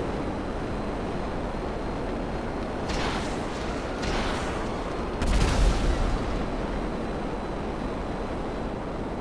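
A jet engine roars steadily with a deep rumble.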